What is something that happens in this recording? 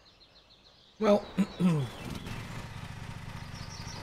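A lawn mower engine starts and runs with a steady low rumble.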